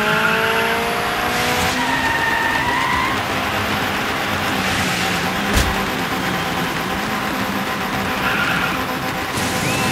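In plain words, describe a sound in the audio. A turbocharged four-cylinder rally car engine races at high revs, then eases off as it slows down.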